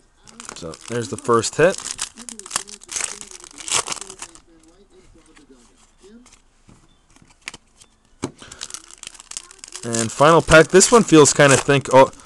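A foil wrapper crinkles as hands tear it open.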